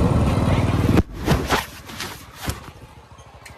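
A cloth bag rustles and brushes against the microphone.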